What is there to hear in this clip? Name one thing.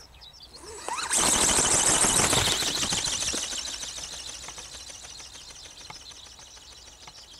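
A small drone buzzes past overhead, loud at first and slowly fading.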